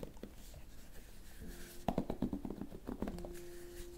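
A hairbrush scratches and crackles through hair close by.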